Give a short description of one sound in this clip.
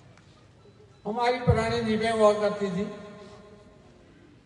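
An elderly man speaks slowly and loudly into a microphone, heard through a loudspeaker with some echo.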